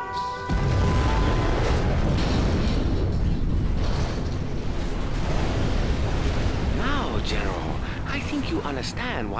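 A huge explosion booms and rumbles deeply.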